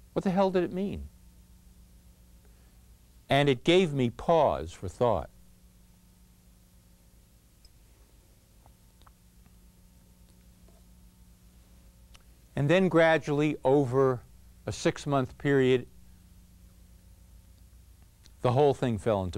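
A man speaks clearly and expressively into a microphone, with long pauses.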